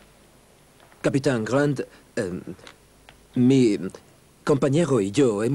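A man speaks firmly and loudly up close.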